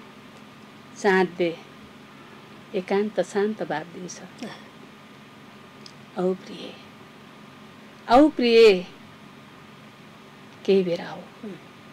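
A woman speaks calmly into a microphone, close by, in short bursts with pauses.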